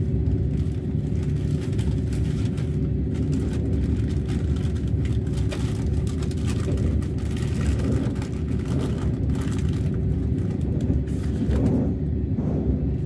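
Pages of a notebook rustle under a hand.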